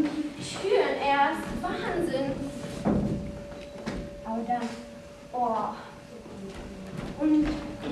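Footsteps thud on a wooden stage.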